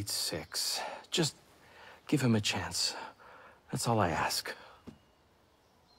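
An elderly man speaks earnestly up close.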